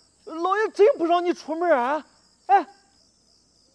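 A middle-aged man speaks loudly and with animation, close by.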